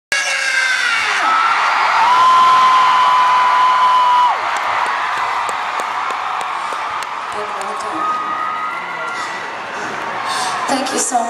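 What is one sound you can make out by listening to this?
A woman sings long held notes through loudspeakers in a large echoing hall.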